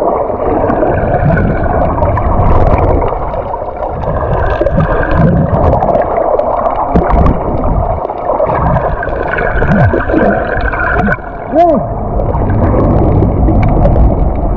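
Water rumbles and churns, heard muffled from underwater.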